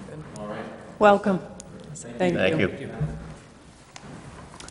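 A middle-aged woman speaks into a microphone.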